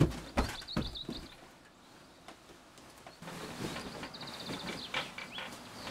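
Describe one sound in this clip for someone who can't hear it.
Bedding rustles as a girl straightens the covers on a bed.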